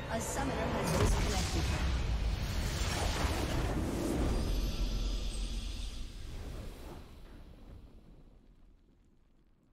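A large structure explodes with a deep, rumbling blast that slowly fades.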